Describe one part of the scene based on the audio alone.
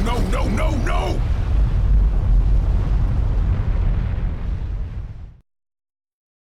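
A volcano erupts with a deep, heavy rumble that fades out.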